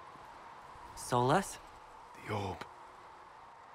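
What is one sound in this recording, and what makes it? A man speaks quietly and sadly, close by.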